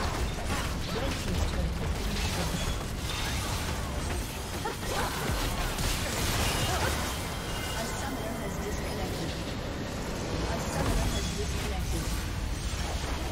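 Game spell effects crackle and clash in quick bursts.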